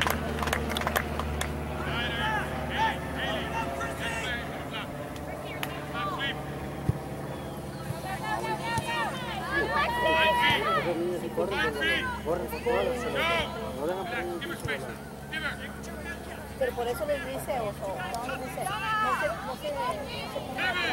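Young women shout and call out to each other across an open field, heard from a distance.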